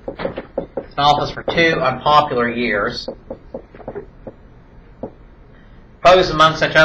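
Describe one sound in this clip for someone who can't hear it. A man speaks calmly nearby, lecturing.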